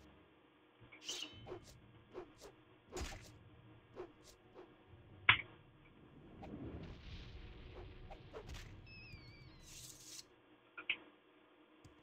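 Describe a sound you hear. A blade swishes through the air and strikes with sharp hits.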